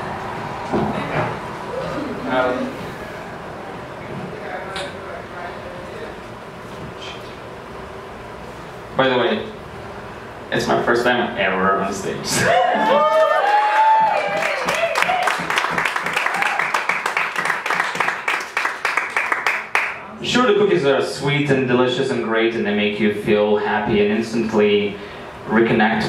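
A man speaks and performs loudly into a microphone, heard through a loudspeaker.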